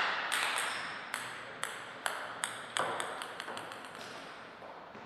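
A table tennis ball bounces a few times on the floor.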